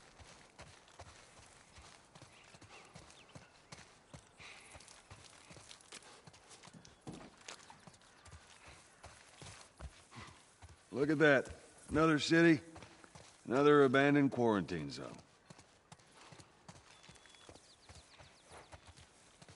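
Footsteps crunch softly on grass and gravel.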